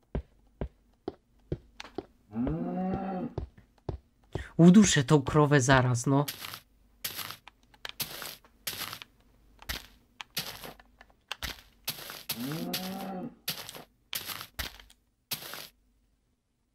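Footsteps crunch and thud in a quick, uneven rhythm.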